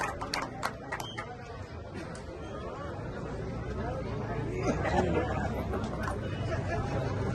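A crowd of men chatter outdoors.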